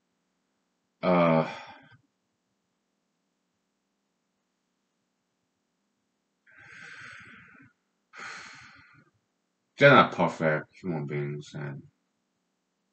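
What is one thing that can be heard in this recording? A man speaks calmly and close by, with pauses between phrases.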